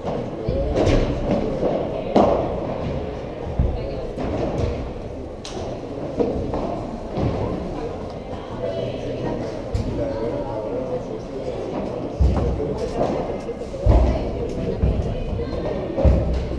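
A ball bounces off the court and walls.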